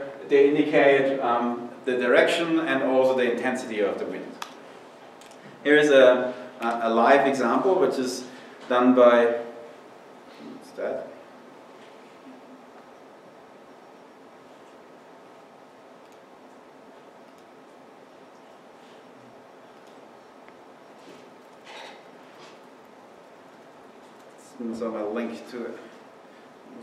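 A man speaks calmly into a microphone in a large room, with pauses.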